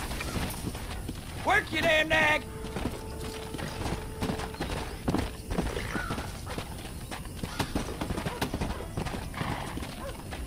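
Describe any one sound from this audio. Horse hooves gallop on dry ground.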